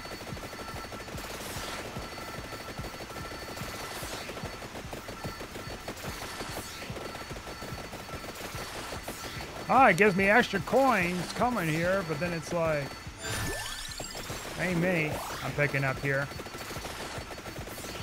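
Rapid video game hit and attack sound effects crackle continuously.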